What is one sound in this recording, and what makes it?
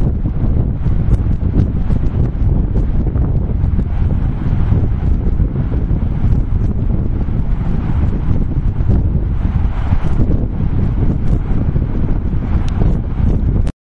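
Wind blusters loudly across the microphone outdoors.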